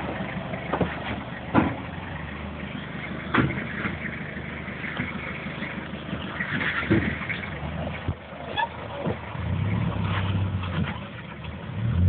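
Tyres crunch and scrape over rocks and dirt.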